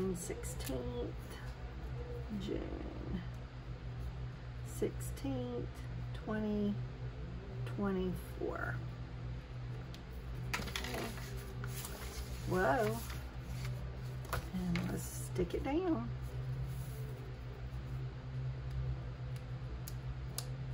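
A pen scratches on paper while writing.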